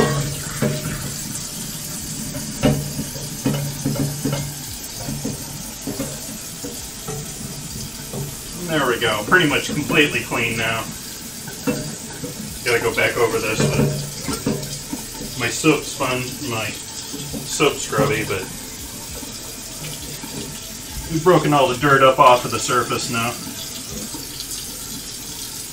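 Onions sizzle in a pan.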